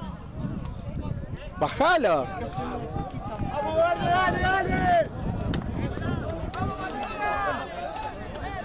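A crowd of spectators shouts and cheers close by, outdoors.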